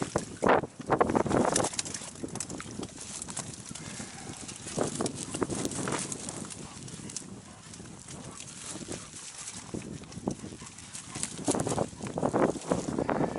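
A fishing net rustles and crinkles as it is handled.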